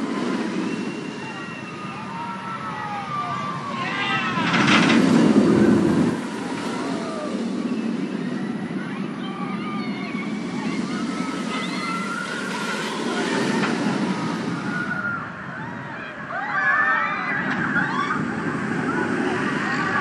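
Riders scream from a distance.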